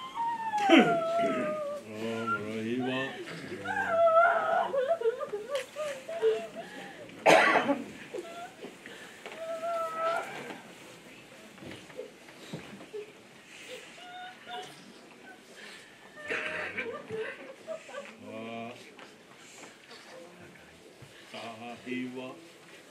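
A woman sings in a mournful, wavering voice nearby.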